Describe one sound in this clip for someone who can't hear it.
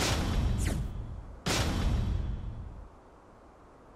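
Game music plays and then fades out.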